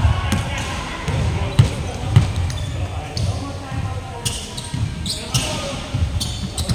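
A basketball bounces with heavy thuds in a large echoing hall.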